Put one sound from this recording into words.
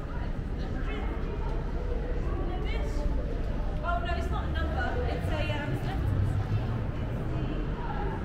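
People's voices murmur in the distance in a large open space with a faint echo.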